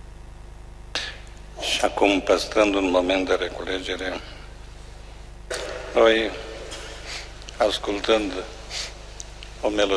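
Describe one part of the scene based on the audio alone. A man speaks slowly through a microphone in a large echoing hall.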